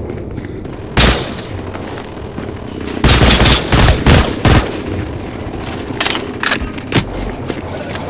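Gunshots fire in loud, sharp bursts.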